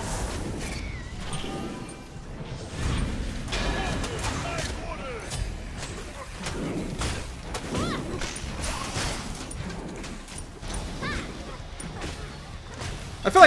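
Magic spells whoosh and crackle in a game battle.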